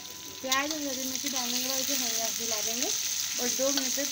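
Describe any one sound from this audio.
A metal spatula scrapes and clinks against a pan.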